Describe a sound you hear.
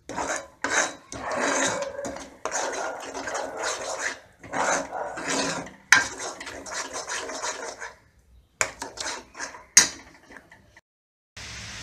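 A metal spoon stirs and scrapes a thick paste in a frying pan.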